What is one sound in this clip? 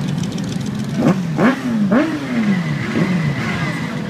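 A motorcycle engine revs up sharply several times.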